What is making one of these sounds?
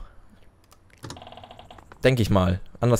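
A video game plays a short electronic chime.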